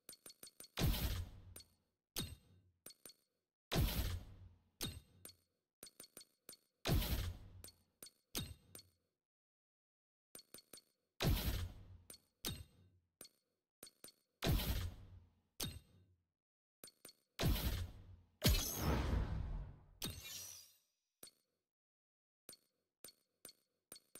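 Short electronic interface clicks tick in quick succession.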